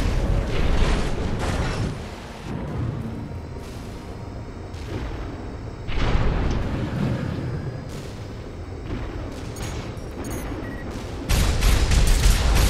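A large robot's thrusters roar as it boosts through the air.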